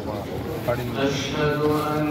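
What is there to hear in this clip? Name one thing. A plastic bag rustles close by.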